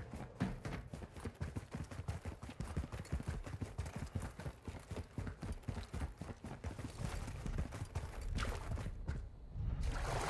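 Footsteps tread quickly along a hard floor.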